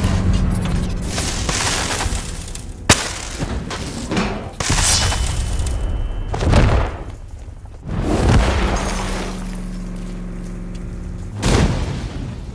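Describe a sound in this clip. A heavy vehicle engine rumbles loudly.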